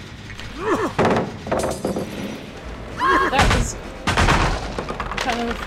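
Metal clanks and crashes as a machine is smashed.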